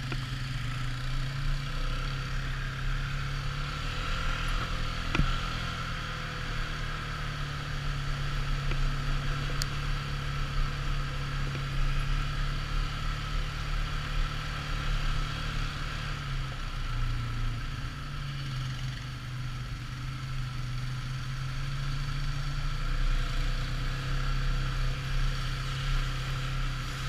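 An all-terrain vehicle engine hums steadily up close.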